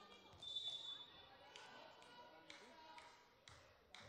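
A volleyball bounces repeatedly on a hard floor.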